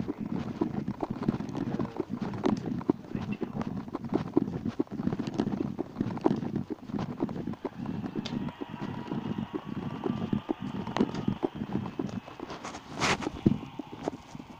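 Footsteps tread along a paved road outdoors.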